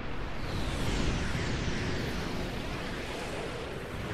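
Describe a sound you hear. A swirling vortex roars with a deep, steady rumble.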